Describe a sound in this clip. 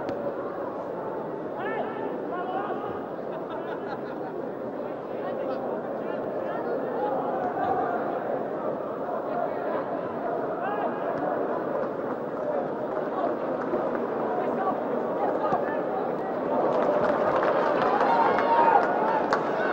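A large stadium crowd cheers and roars, growing louder toward the end.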